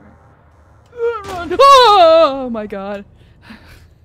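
A young woman shrieks and wails with exaggerated pitch into a close microphone.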